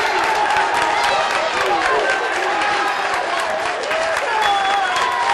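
Football fans clap their hands.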